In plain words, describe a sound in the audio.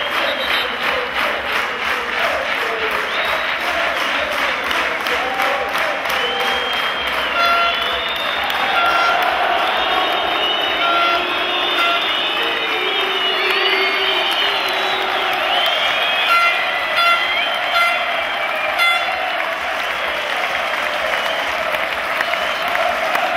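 A large stadium crowd cheers and chants loudly outdoors.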